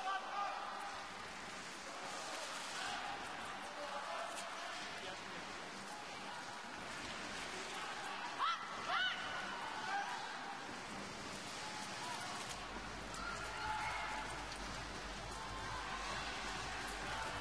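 Ice skate blades scrape and hiss across the ice.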